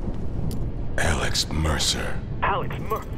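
A man speaks in a low, menacing voice.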